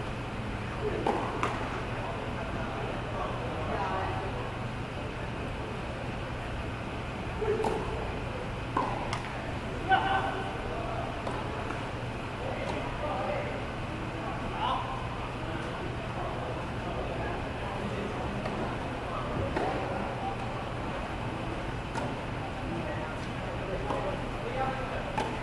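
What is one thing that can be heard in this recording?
Tennis balls are struck with rackets, echoing in a large open hall.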